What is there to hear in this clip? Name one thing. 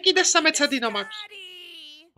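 A young boy speaks in a cartoon voice.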